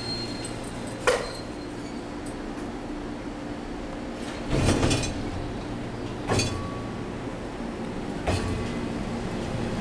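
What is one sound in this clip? A train pulls away with clanking wheels on the rails.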